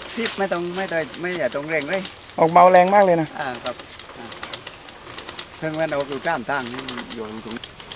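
A water sprinkler hisses as it sprays.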